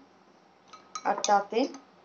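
A spoon clinks against a glass of water.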